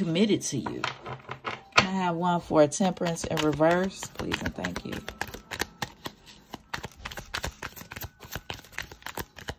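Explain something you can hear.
Playing cards riffle and flutter as they are shuffled close by.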